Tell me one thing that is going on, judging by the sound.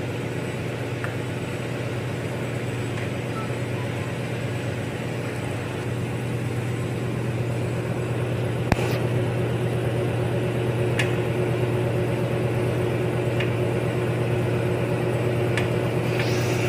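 A metal tool clicks and scrapes against plastic clips close by.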